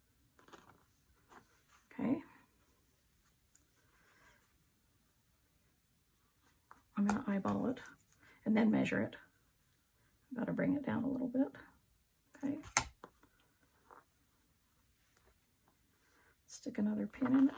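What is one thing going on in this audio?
Fabric rustles softly as hands smooth it.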